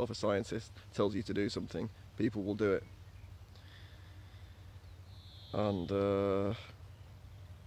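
A young man talks calmly and close up, outdoors.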